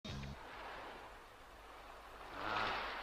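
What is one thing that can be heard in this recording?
Sea waves crash and roar.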